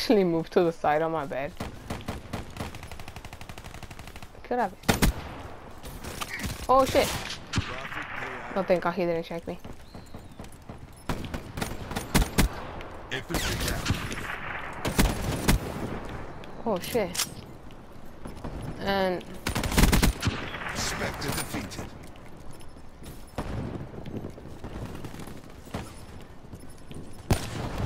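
Guns fire in sharp rapid bursts.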